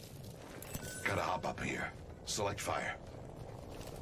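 A man talks into a microphone with animation.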